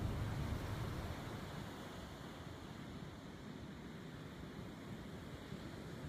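Waves wash up softly onto a beach.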